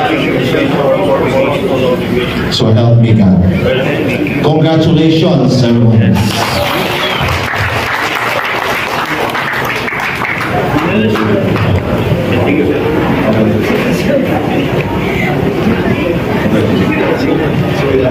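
A crowd murmurs and chatters in the background.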